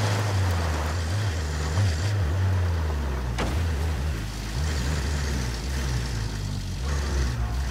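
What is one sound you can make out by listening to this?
A truck bumps and rattles over rough ground.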